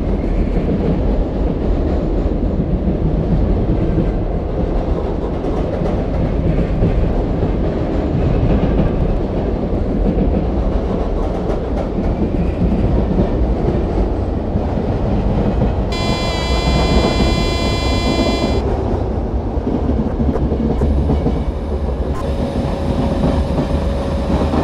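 An electric passenger train rumbles along the rails.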